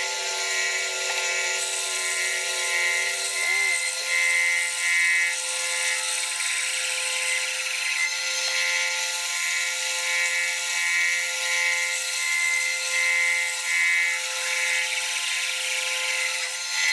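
A band saw motor hums steadily.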